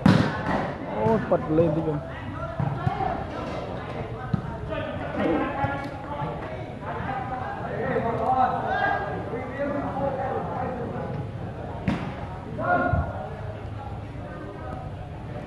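A crowd of men and women chatters and calls out nearby under a large echoing roof.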